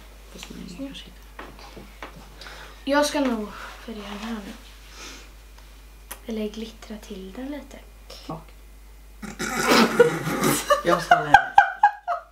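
A child talks with animation close by.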